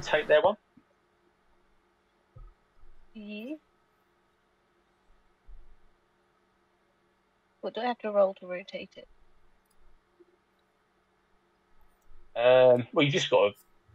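Young men and women talk in short, lively bursts over an online call.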